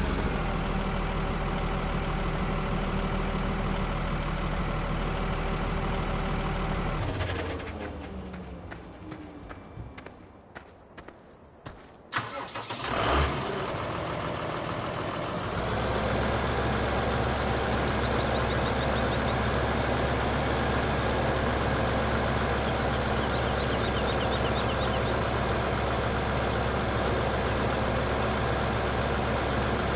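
A tractor engine hums steadily, drops away, then returns.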